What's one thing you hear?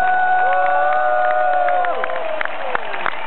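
An electric guitar chord rings out loudly through a large sound system and fades.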